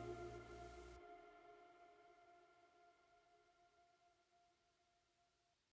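A band's final chord rings out and slowly fades away.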